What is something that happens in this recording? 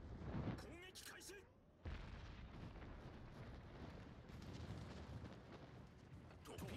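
Heavy guns boom and rumble in a sea battle.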